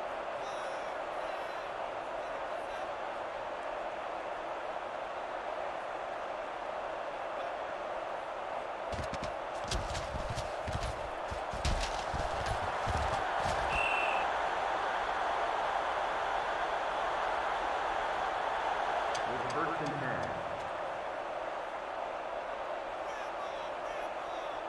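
A stadium crowd roars steadily and swells after a big play.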